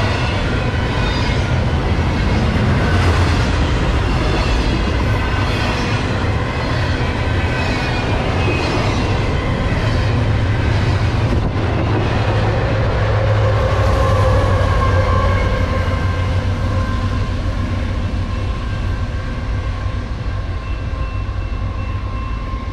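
A long freight train rumbles past close by.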